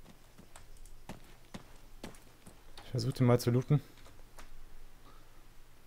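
Footsteps crunch over dry ground.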